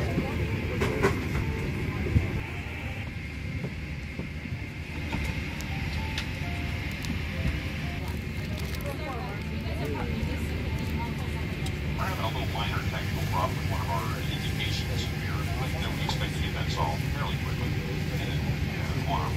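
An aircraft cabin drones with a steady low hum.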